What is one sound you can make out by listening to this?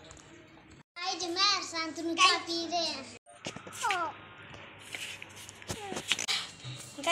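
A small child babbles close by.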